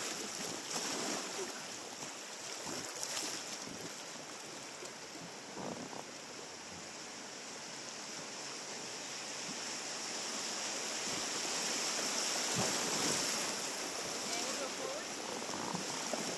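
A river rushes and splashes over rapids, growing louder.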